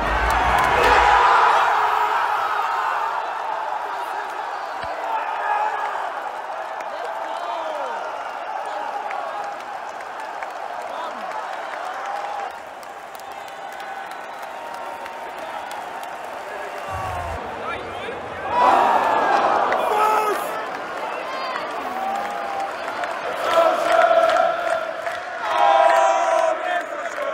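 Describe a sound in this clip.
A large stadium crowd cheers and sings loudly.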